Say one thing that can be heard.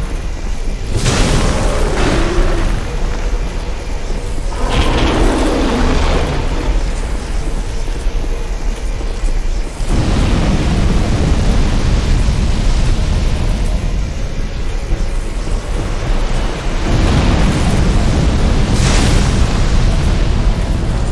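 Fire roars and bursts in blasts.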